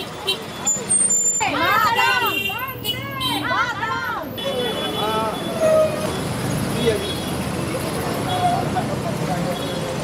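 An electric rickshaw whirs softly as it drives along.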